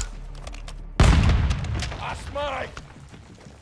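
An explosion booms nearby and rumbles.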